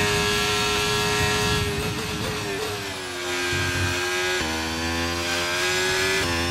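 A racing car engine whines loudly at high revs.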